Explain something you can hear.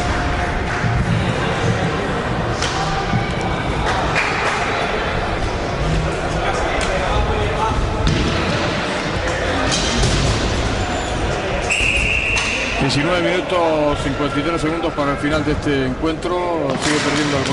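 Hockey sticks clack against each other and the floor.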